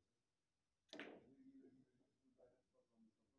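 Billiard balls click together and roll on the table.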